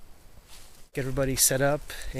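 A man speaks calmly, close to the microphone.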